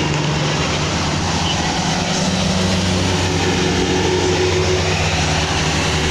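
Cars drive past on the road.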